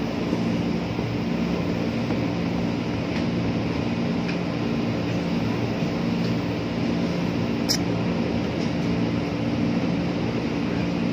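A train rumbles steadily along the tracks with a low engine hum.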